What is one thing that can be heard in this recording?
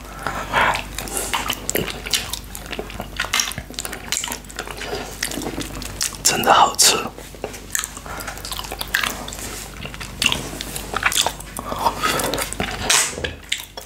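A man licks and sucks on a hard candy with wet smacking sounds.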